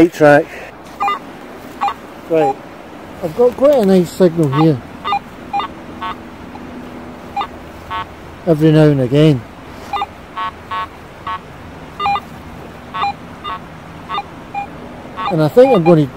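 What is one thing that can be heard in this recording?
A metal detector beeps in short, high tones.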